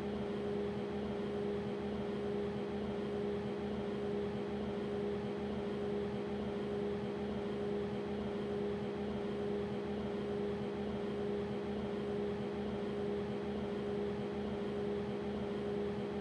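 A locomotive hums steadily while standing still.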